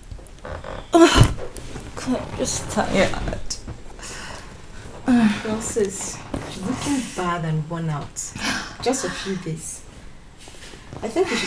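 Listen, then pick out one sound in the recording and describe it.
A young woman moans and wails loudly.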